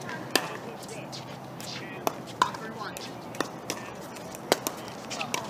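Pickleball paddles strike a hollow plastic ball back and forth outdoors.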